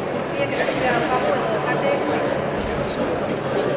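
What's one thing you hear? A man answers into a second microphone over loudspeakers.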